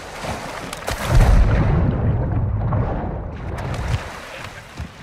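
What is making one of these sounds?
Water splashes and bubbles as a swimmer dives under.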